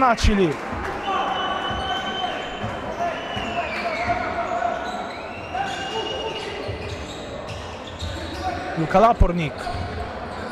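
Sneakers squeak on a wooden floor.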